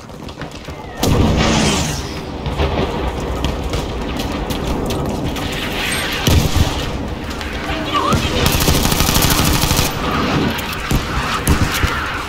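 A rifle fires in sharp, loud bursts.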